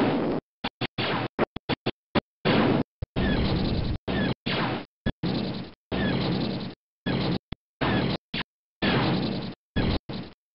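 A retro arcade game's ship fires and rocks explode in short, harsh, noisy bursts.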